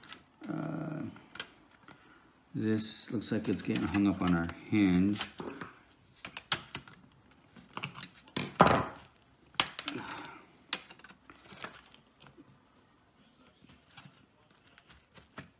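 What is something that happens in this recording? A plastic tool clicks and scrapes against a laptop's metal and plastic casing.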